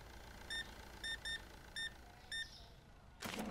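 A checkout scanner beeps several times.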